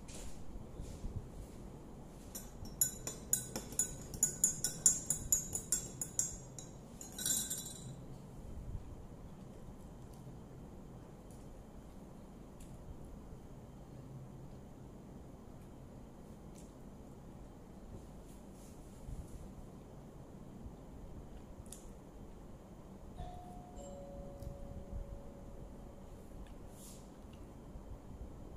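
A woman chews food quietly, close by.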